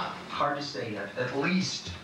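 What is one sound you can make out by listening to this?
A woman talks quietly into a phone.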